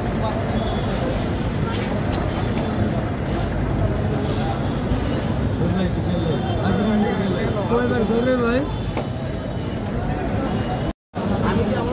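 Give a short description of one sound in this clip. A crowd of people chatters busily outdoors.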